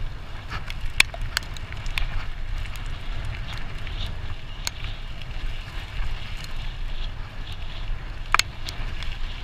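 A bicycle frame clicks and clatters over bumps.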